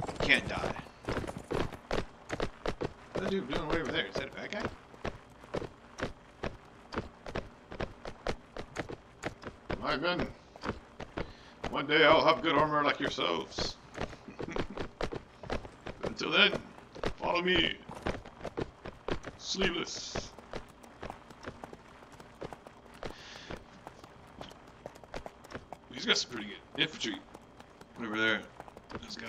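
Horses' hooves thud rapidly on the ground.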